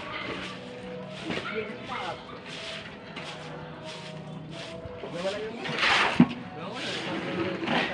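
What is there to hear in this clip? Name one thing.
Wet cement slides and splashes out of a bucket.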